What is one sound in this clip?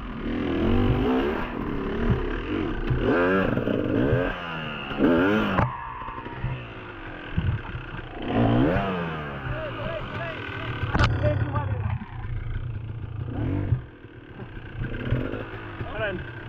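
Other dirt bike engines rev nearby.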